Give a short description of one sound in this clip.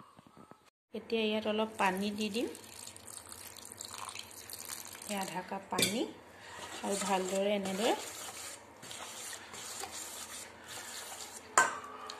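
A metal spoon scrapes and clinks against a metal bowl.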